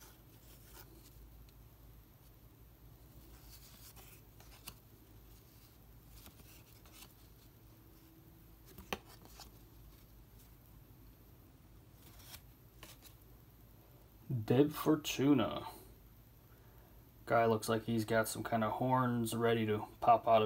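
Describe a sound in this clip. Trading cards shuffle and tap softly in hand.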